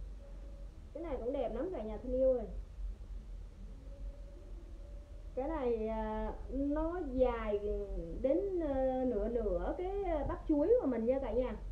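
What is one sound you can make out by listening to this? A young woman speaks close by, in a lively voice.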